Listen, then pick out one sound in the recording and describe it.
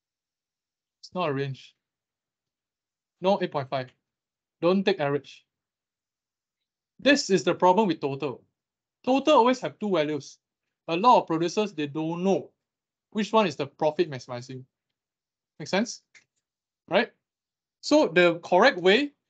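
A young man talks calmly into a microphone, in short phrases with pauses.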